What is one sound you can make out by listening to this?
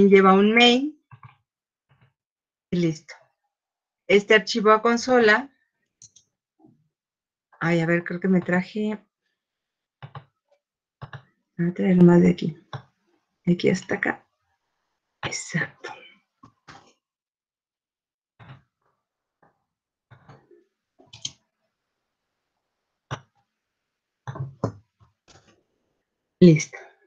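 A woman speaks calmly in short phrases, heard through a computer microphone.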